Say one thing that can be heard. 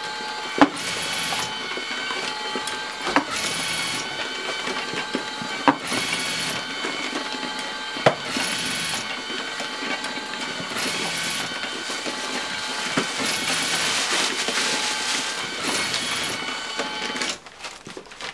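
A labeling machine hums and whirs steadily.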